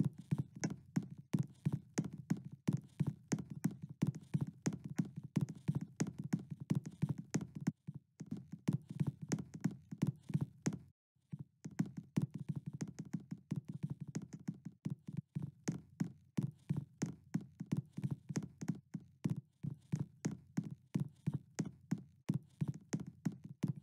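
Quick, regular footsteps tap on a hard floor.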